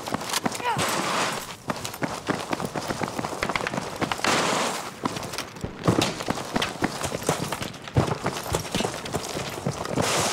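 Footsteps crunch quickly over rocky ground.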